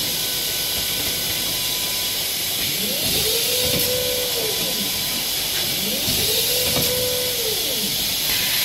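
A bottling machine hums and hisses steadily.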